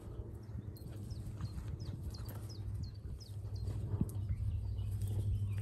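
Two dogs growl and snarl playfully as they wrestle.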